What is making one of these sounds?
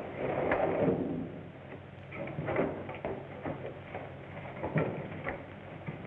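Men scuffle and thud against wood.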